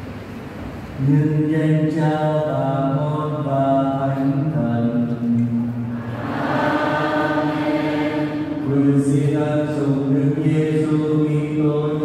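A group of people sing together nearby.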